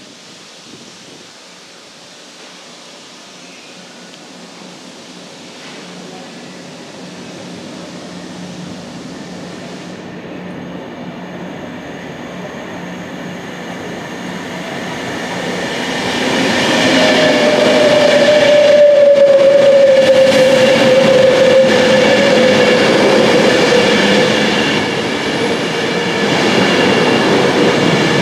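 A train approaches from afar, growing steadily louder, and roars past close by.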